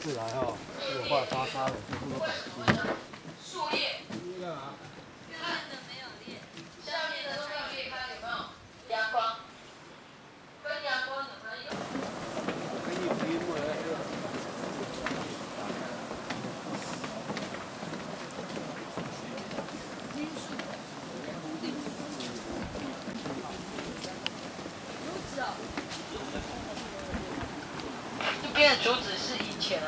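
Footsteps thud on stairs and wooden boards.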